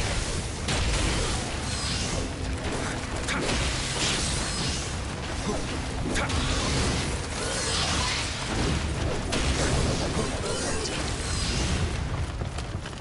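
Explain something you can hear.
Blades slash and strike in a fast fight.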